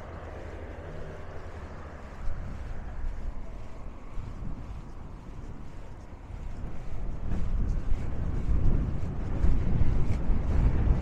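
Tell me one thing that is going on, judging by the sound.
Wind blows across the microphone outdoors, gusting stronger toward the end.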